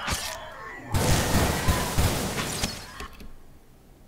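A fireball bursts with a loud whooshing roar.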